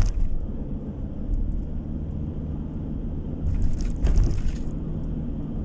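Tyres roll and rumble steadily on the road.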